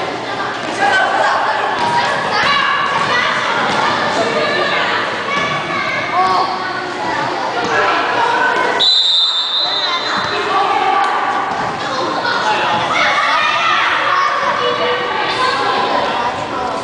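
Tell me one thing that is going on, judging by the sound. Children chatter and shout loudly nearby, echoing in a large hall.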